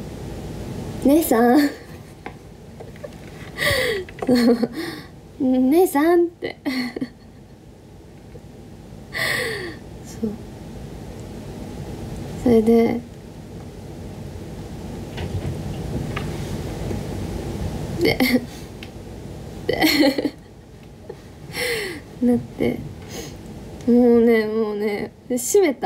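A young woman talks casually and close to the microphone, in short bursts.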